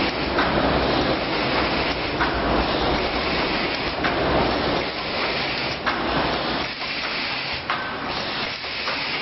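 A packaging machine hums and clatters steadily.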